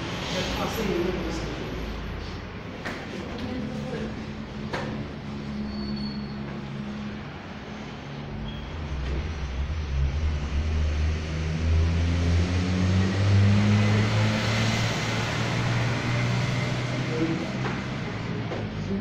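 Bodies thump and shift on a padded mat.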